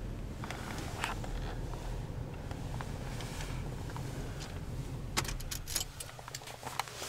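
A vehicle engine idles with a low, steady rumble.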